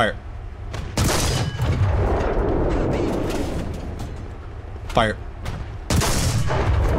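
A tank cannon fires with a loud boom that echoes away.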